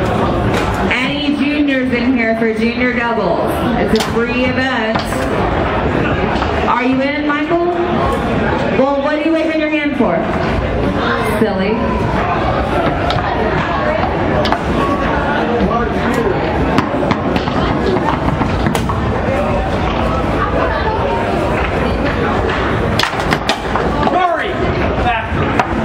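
Foosball rods rattle and clack as players spin and slide them.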